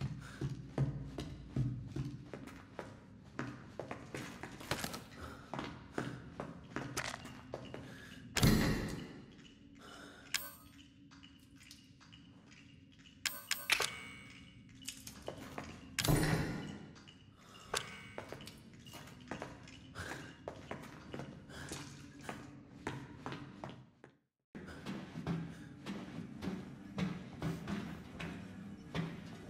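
Footsteps thud slowly on a hard concrete floor.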